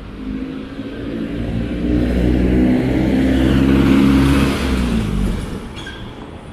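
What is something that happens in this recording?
A vehicle engine rumbles loudly as it drives past close by.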